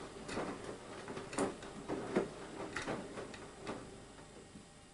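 Wet laundry thumps softly as it tumbles in a washing machine drum.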